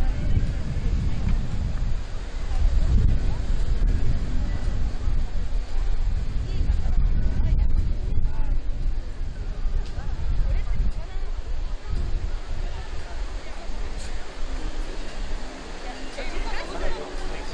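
Waves crash against rocks in the distance.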